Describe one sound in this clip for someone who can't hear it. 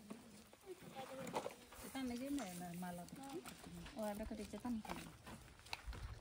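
A young woman talks calmly nearby outdoors.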